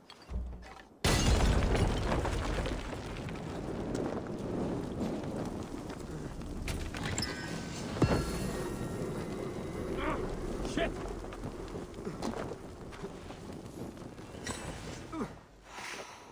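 A fire bursts into flame and roars with crackling.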